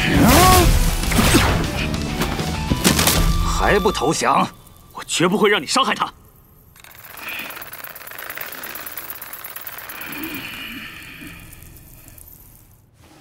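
Electricity crackles and sizzles loudly.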